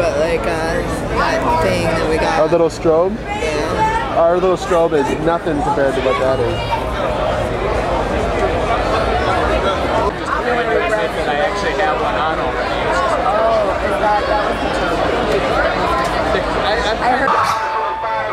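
A crowd talks and chatters loudly close by.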